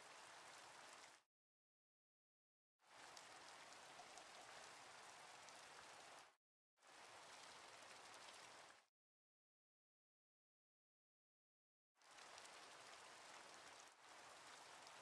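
Steady rain hisses and patters.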